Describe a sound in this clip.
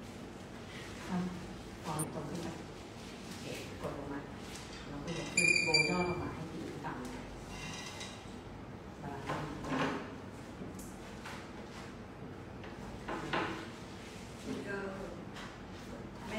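A young woman speaks calmly, giving instructions.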